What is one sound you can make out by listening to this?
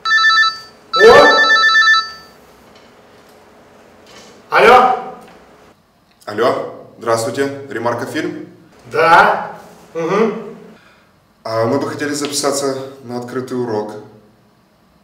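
A man speaks tensely into a phone close by.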